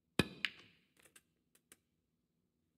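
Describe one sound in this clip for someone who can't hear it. Snooker balls knock against each other.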